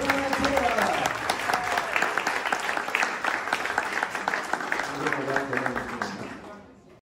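Several people in a crowd cheer and whoop.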